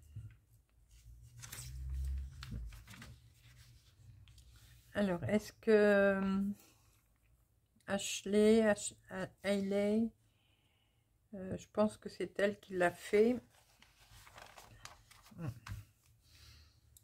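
Paper pages rustle as a magazine is unfolded and turned.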